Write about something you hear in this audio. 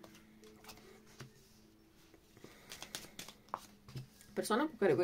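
Playing cards slide and tap softly on a cloth-covered table.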